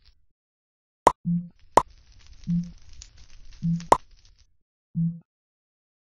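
Short game menu clicks sound as items are selected.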